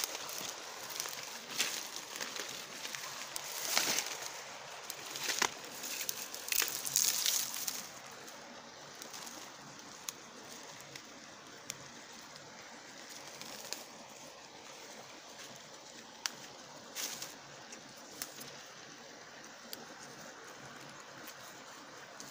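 Dry twigs snap and crackle underfoot.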